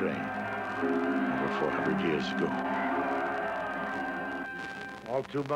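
A large crowd chants loudly in unison.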